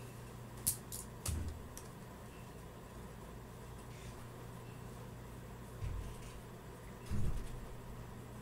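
A plastic hand mirror knocks softly as it is handled.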